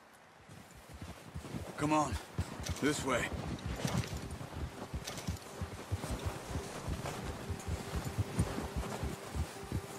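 Horse hooves thud steadily through snow.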